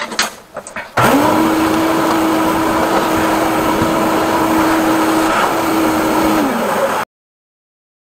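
A drain-cleaning machine whirs steadily.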